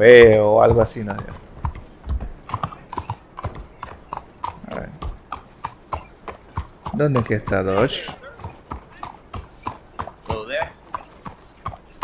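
A horse's hooves clop steadily on a stone street.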